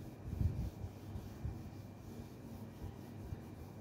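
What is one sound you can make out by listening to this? A cloth rubs across a whiteboard.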